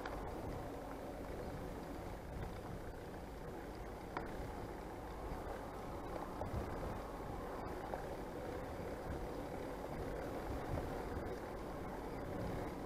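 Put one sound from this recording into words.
Tyres roll along a paved road.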